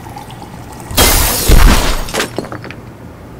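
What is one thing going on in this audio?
A wall crashes and crumbles with a loud smash.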